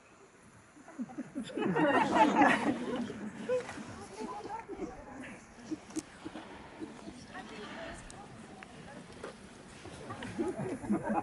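A crowd of children chatters and calls out outdoors.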